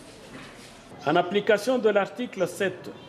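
A man reads out aloud, close to a microphone.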